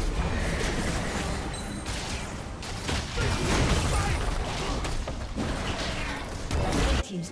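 Video game spells and blasts crackle and boom in a busy battle.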